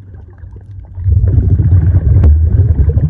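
A snorkeler breathes out through a snorkel, sending up loud burbling bubbles close by.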